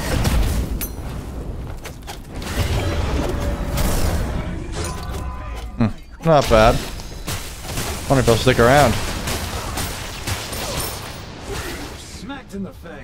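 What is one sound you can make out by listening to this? Game spell effects crackle and boom.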